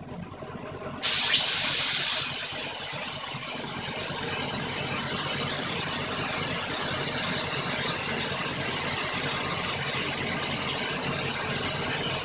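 A spray nozzle hisses loudly as it blasts a jet of air or mist.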